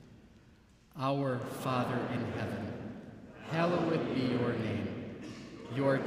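A man reads aloud steadily through a microphone.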